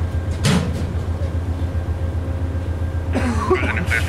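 Train wheels clatter slowly on the rails.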